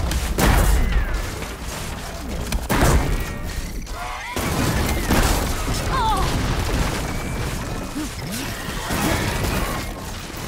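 Mechanical beasts screech and growl.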